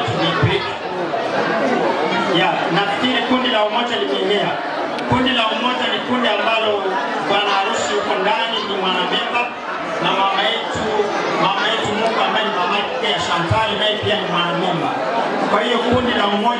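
A man sings loudly through a microphone in a large echoing hall.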